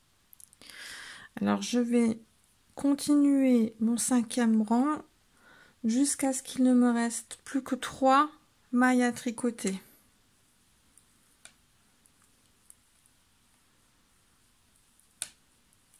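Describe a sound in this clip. Knitting needles click softly.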